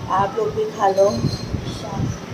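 A young woman speaks close by in a cheerful, lively voice.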